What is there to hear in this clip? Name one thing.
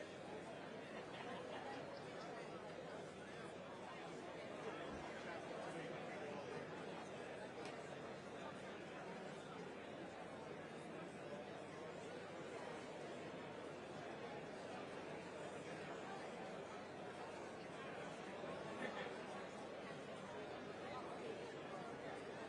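A large crowd of audience members chatters steadily in an echoing theatre hall.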